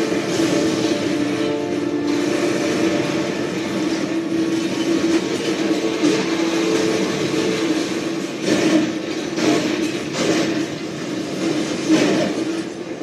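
Video game explosions and gunfire boom through a television speaker.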